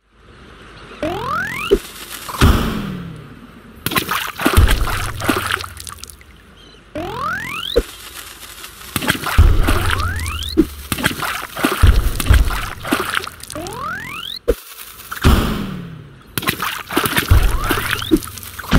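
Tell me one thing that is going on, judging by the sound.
A game's cannon fires with a rising whoosh.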